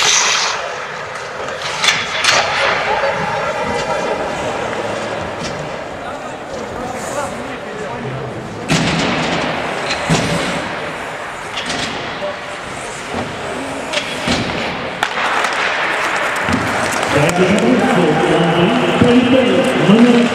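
Men shout to each other in a large echoing rink.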